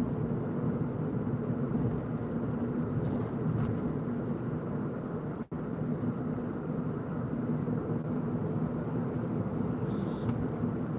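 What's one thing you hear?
Tyres roll steadily on the road with a low rumble from inside a moving car.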